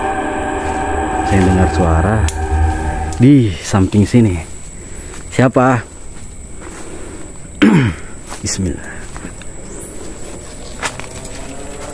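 Leaves and branches rustle as someone pushes through dense undergrowth.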